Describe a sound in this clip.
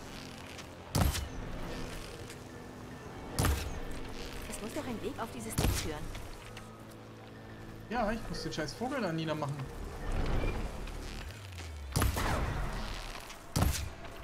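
A bowstring snaps as arrows are loosed.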